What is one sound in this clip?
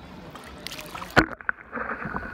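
Water laps and splashes at the surface.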